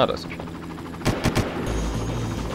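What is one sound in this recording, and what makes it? A rifle fires a quick burst of gunshots.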